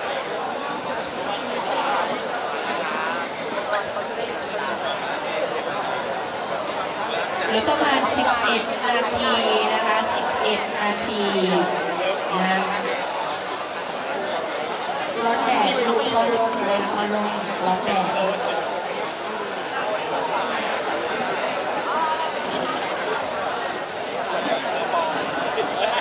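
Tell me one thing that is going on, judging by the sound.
A crowd of people chatters nearby in a large open space.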